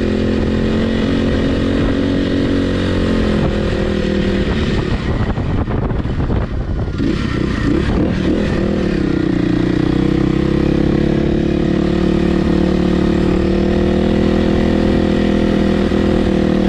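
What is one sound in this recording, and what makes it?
Wind rushes past loudly outdoors.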